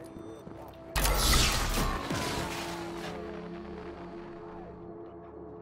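A device bursts with a loud crash that rings away.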